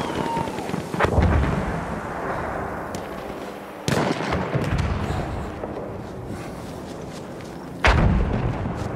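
A rifle fires several loud, sharp shots that echo away.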